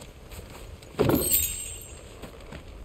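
A chest opens with a bright chime.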